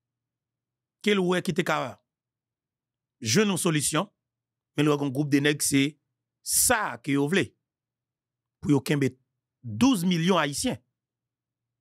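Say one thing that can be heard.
A man speaks into a close microphone with animation, in short bursts with pauses.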